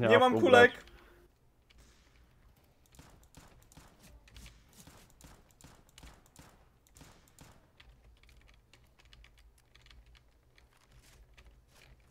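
Footsteps tread steadily over grass and dirt.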